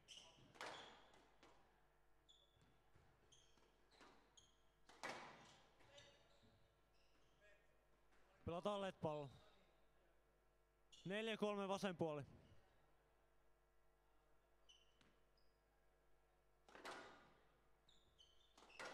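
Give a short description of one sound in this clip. A squash ball smacks against the walls in an echoing hall.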